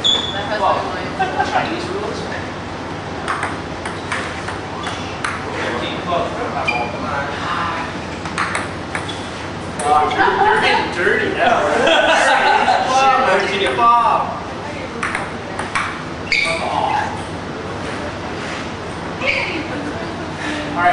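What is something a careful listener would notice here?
A ping-pong ball clicks back and forth on a table and paddles.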